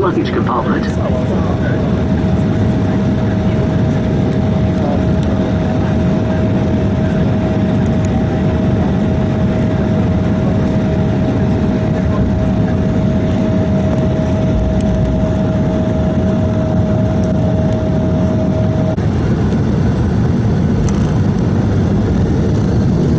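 Jet engines roar steadily from inside an airliner cabin.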